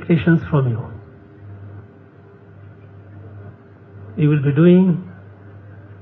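A middle-aged man speaks slowly and formally into a microphone, heard through a loudspeaker.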